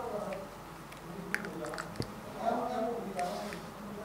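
Thick liquid pours into a glass bowl.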